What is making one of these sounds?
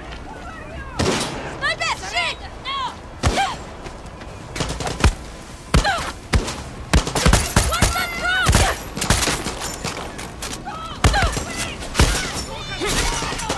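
A gun fires sharp, loud shots in bursts.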